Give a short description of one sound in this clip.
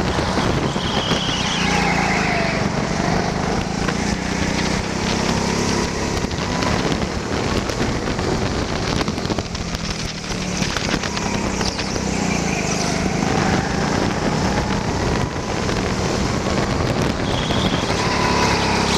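Kart tyres squeal through sharp turns.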